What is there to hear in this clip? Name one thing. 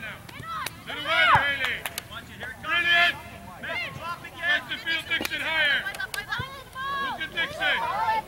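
A ball is kicked on grass in the distance.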